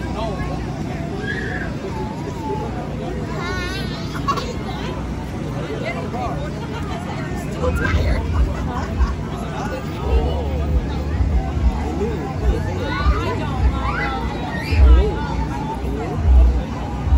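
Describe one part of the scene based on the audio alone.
Children chatter and call out in a crowd outdoors.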